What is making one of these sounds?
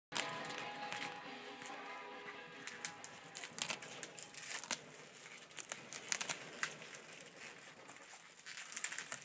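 A hamster nibbles and crunches on a leaf close by.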